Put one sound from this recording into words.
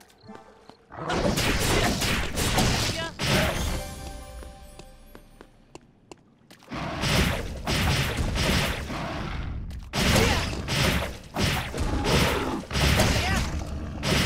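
Sword slashes and energy blasts crackle in a fight.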